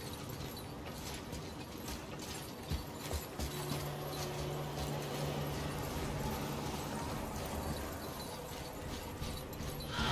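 Footsteps crunch on snow and stone.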